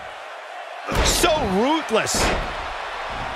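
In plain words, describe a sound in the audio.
A wrestler slams an opponent onto the mat with a heavy thud.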